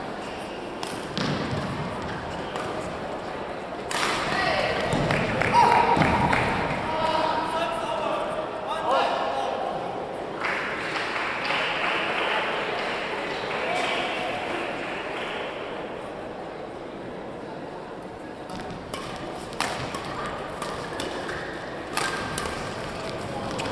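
Shuttlecocks are hit with sharp pops of rackets in a large echoing hall.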